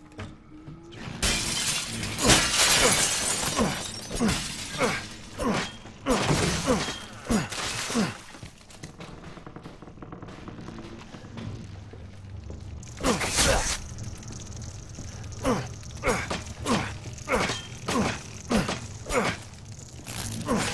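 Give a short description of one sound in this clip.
Footsteps thud on a creaking wooden floor.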